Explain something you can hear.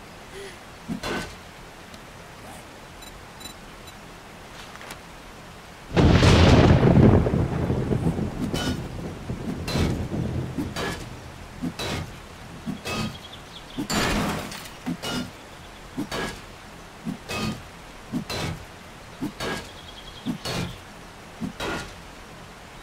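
An axe strikes a metal door again and again with heavy thuds.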